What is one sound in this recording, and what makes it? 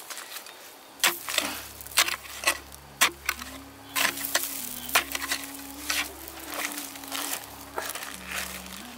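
A metal digging tool strikes and scrapes into dry, stony soil.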